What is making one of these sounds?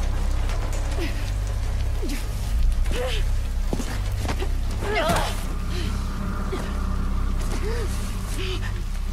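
A young woman groans and gasps in pain close by.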